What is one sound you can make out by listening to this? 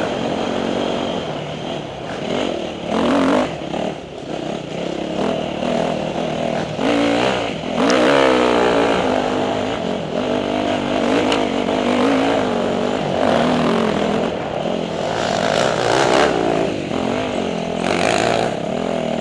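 A dirt bike engine revs and whines up and down close by.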